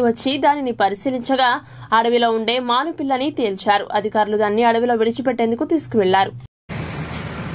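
A young woman reads out the news calmly through a microphone.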